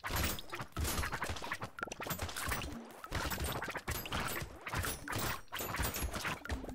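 Rapid video game gunfire and hit effects crackle nonstop.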